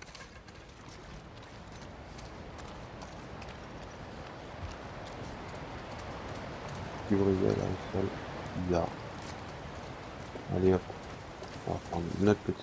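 Footsteps splash softly on wet ground.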